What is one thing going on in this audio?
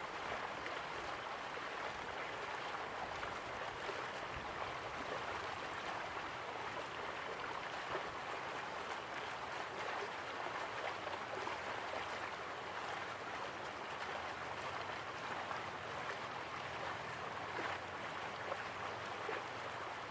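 Waterfalls rush steadily in the distance.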